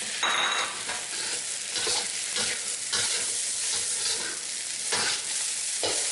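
Rice sizzles steadily in a hot pan.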